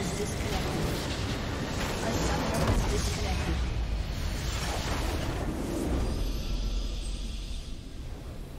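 A crystal structure explodes with a loud crumbling blast.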